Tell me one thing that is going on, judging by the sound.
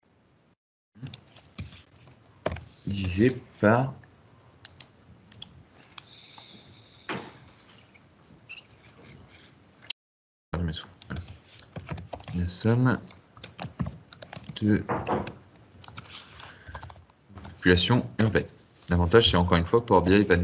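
A young man speaks calmly and explains into a close microphone.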